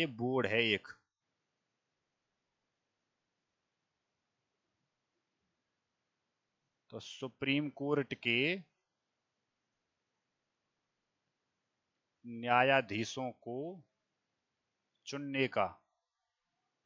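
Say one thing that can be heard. A young man speaks calmly into a headset microphone in short bursts.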